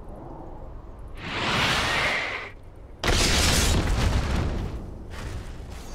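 Magic spell effects whoosh and crackle.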